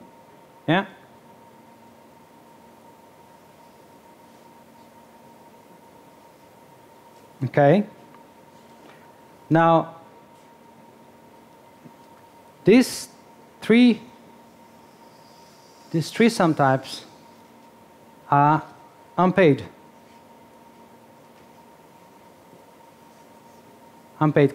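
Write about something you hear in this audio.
A man speaks in short, spaced bursts through a headset microphone.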